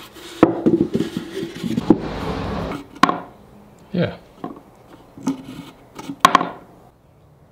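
A wooden lid slides and knocks on a wooden box.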